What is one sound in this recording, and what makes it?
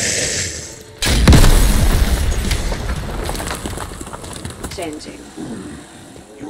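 A weapon fires with a loud booming blast that slowly dies away.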